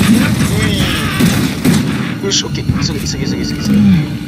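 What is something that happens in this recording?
A shotgun fires with loud blasts.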